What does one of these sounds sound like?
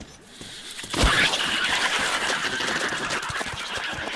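A gun fires in rapid bursts close by.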